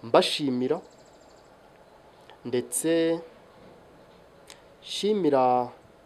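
A man speaks calmly in short phrases close to a microphone.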